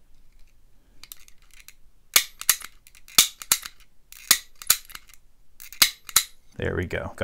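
Small metal picks click and scrape inside a lock.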